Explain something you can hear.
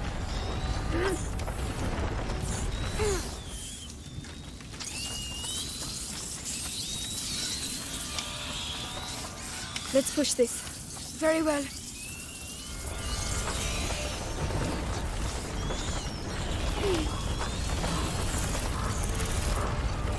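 Wooden cart wheels creak and rumble over rough ground.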